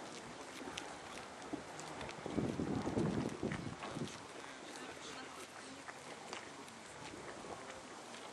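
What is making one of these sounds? Water laps gently against the shore outdoors.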